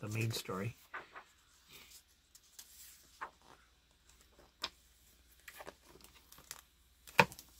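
Paper pages rustle and flip as comic books are handled.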